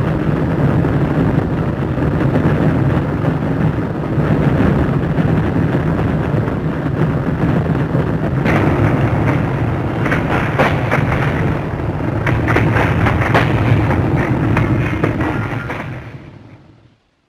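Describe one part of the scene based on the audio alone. A large fire roars with a deep, steady rumble.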